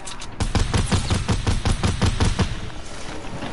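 Rapid gunfire sounds in a video game.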